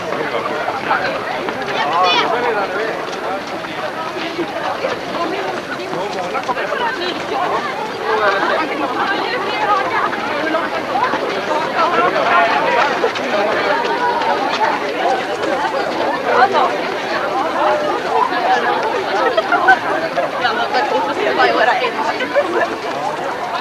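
Many running feet patter on a paved path.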